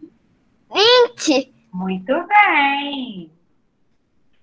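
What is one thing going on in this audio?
A young woman speaks cheerfully into a microphone on an online call.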